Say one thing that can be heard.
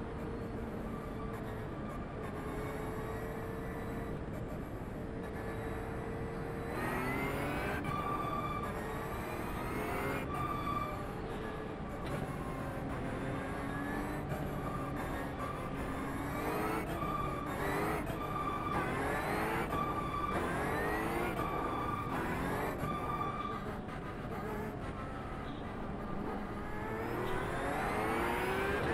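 A racing car engine revs and whines through gear changes.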